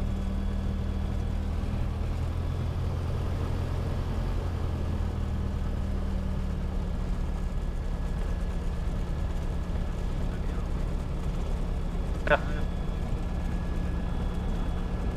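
A small plane's propeller engine drones steadily and loudly.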